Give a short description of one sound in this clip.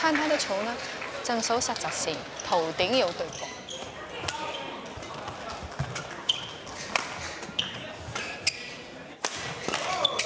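Rackets strike a shuttlecock in a fast rally, with sharp pops echoing in a large hall.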